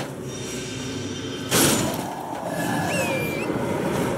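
A sword swings and strikes with a sharp hit.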